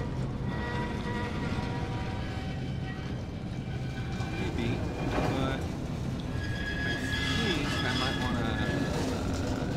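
A wooden crate scrapes as it is pushed across a floor.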